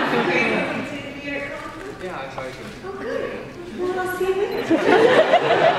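A young woman speaks into a microphone through loudspeakers in a large hall.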